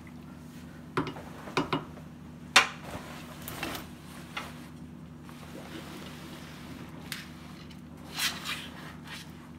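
A spatula knocks against the side of a metal pot.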